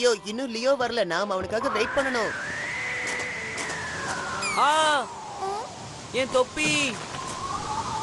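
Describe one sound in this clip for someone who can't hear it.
A boy speaks with animation in a cartoon voice.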